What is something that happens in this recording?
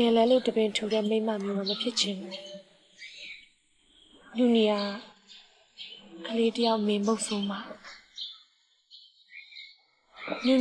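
A young woman speaks close by in a displeased voice.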